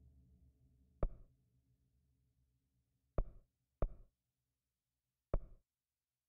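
Short menu clicks sound a few times.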